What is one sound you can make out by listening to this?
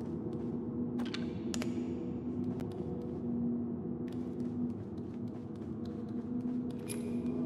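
Small footsteps tap on a hard floor.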